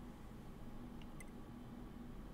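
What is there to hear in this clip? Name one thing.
A soft electronic blip sounds once as a menu choice changes.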